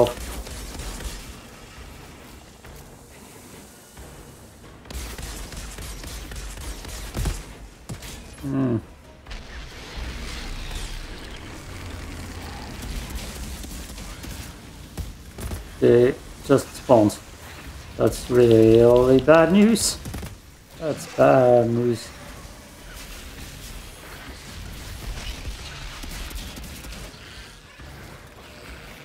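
Gunfire and explosions from a game boom and crackle.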